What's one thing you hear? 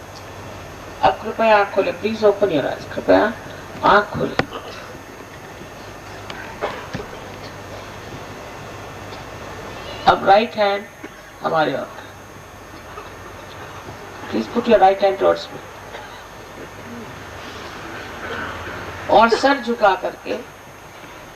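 An elderly woman speaks calmly into a microphone, in short phrases with pauses.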